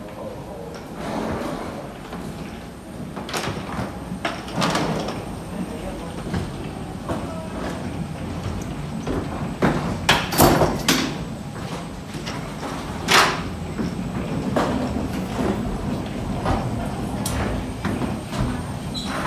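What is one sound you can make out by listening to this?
Footsteps thud along a hollow walkway.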